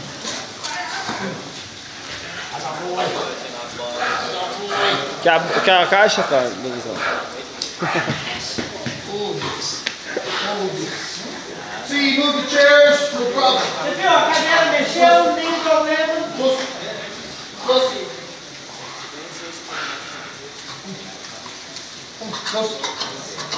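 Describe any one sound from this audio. A man shouts commands at a dog nearby.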